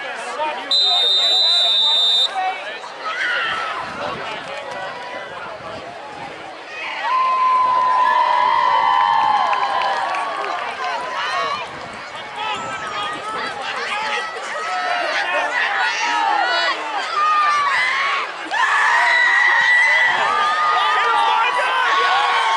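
A crowd of spectators cheers and shouts across an open field.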